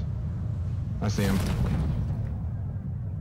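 A parachute snaps open with a whoosh.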